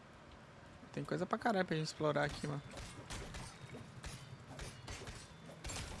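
A sword swings and strikes repeatedly in a game fight.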